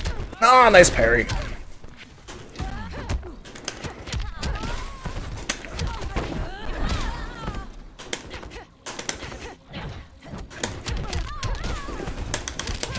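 Punches and blows thud and crack in quick bursts.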